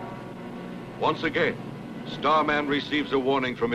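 A man speaks firmly and loudly.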